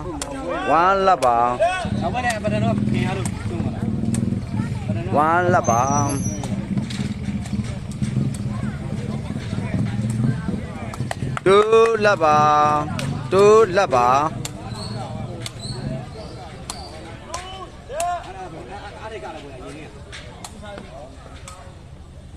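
A cane ball is kicked with sharp, hollow thuds.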